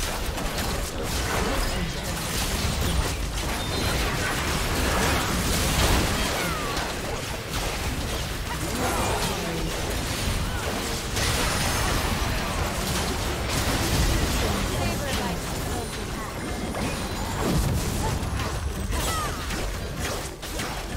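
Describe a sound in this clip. Magic spells blast and crackle in a fast, busy fight.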